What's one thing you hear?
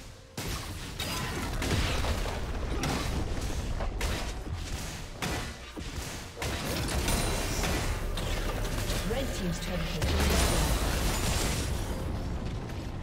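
Spell blasts and clashing hits from a game's fight ring out in quick bursts.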